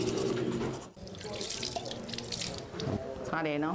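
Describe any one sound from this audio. Water pours and splashes into a basin.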